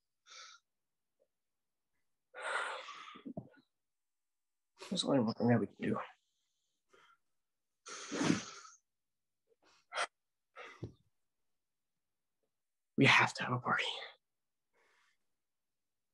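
A young man speaks with feeling over an online call, in short bursts with pauses.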